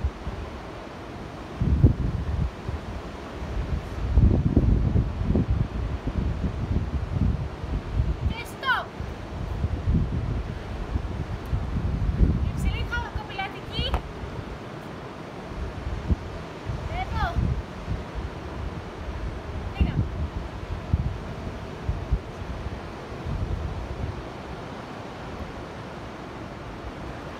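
Waves wash against the shore in the distance.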